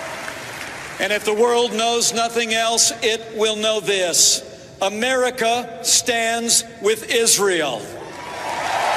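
A middle-aged man speaks forcefully into a microphone in a large echoing hall.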